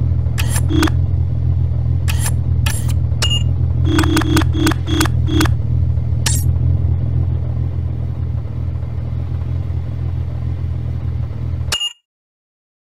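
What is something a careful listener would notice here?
Short electronic menu clicks and blips sound repeatedly.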